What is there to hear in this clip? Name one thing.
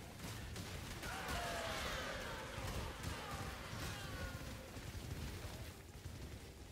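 Magical spell effects whoosh and crackle with rising and falling chimes.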